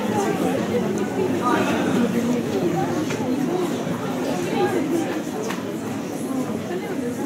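A group of young singers sings together through loudspeakers in a large hall.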